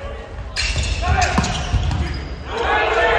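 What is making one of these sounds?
Players' shoes squeak on a gym floor.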